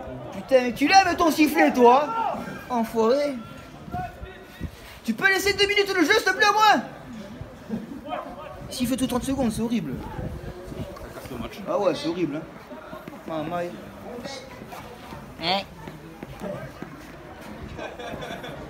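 Men shout and call out loudly outdoors across an open field.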